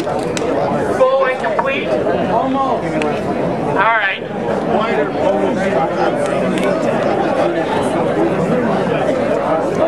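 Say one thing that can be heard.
A man speaks loudly through a megaphone outdoors.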